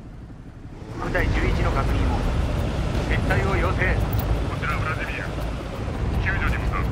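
Heavy tank engines rumble as armoured vehicles roll forward.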